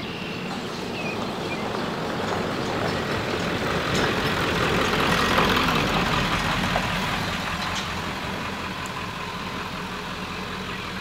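A vehicle drives past on a nearby road, rising and then fading.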